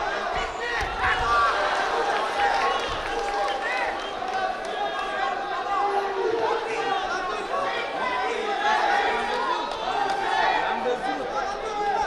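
Spectators shout and call out in a large echoing hall.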